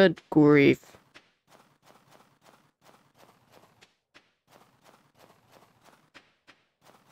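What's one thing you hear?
Footsteps crunch steadily on snow.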